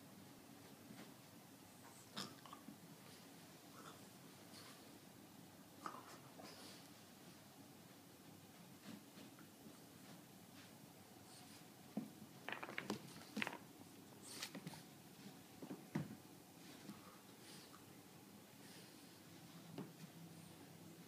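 A small dog scuffles and thumps about on a carpet.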